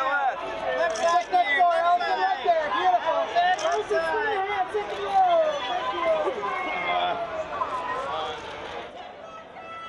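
A young woman speaks cheerfully and close up.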